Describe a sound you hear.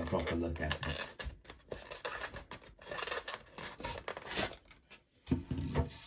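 Stiff foam packaging squeaks and rubs as it is pulled off.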